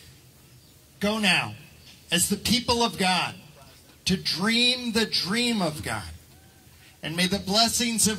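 A man speaks loudly and with animation through a headset microphone over loudspeakers outdoors.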